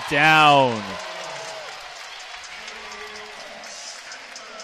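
A large crowd cheers and applauds in an echoing hall.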